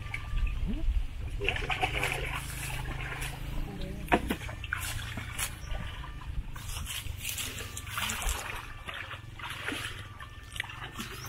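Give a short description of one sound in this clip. Water splashes as men wade through a shallow stream.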